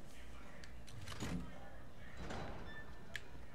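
A heavy metal door creaks open.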